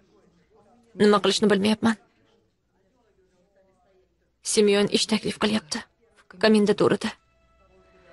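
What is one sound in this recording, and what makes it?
A middle-aged woman speaks in a low, tense voice, close by.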